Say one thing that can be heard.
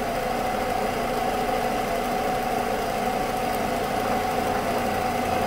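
A band saw runs with a steady, even hum.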